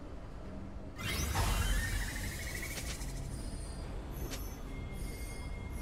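Video game sound effects burst out with a falling, ringing whoosh.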